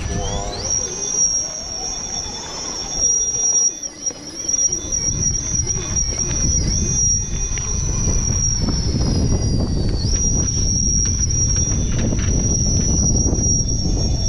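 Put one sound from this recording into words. Plastic tyres scrape and crunch on rock.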